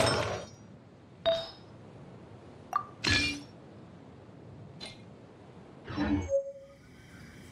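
Soft chimes ring out in short bursts.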